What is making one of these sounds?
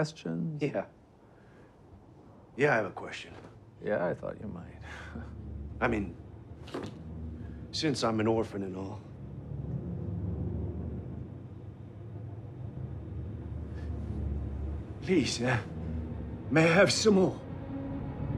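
A man with a deeper voice answers calmly and firmly.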